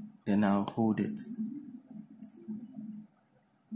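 A finger presses a button with a soft click.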